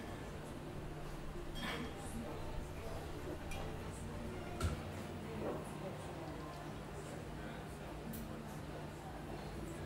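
An electric guitar plays softly through an amplifier.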